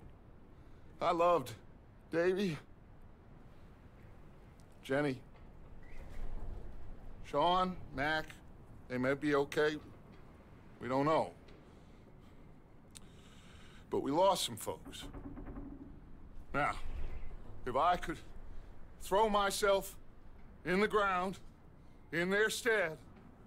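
A man speaks slowly and gravely, close by, with pauses between phrases.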